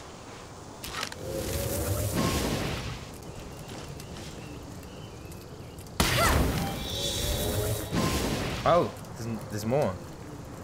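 Bow shots twang and burst in a game.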